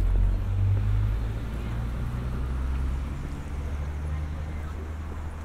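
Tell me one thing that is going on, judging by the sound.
Cars drive along a street nearby with a low, steady rumble.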